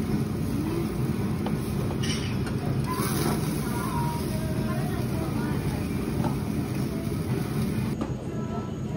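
Meat sizzles on a hot grill.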